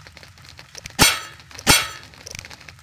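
Two sharp clicks sound from a menu.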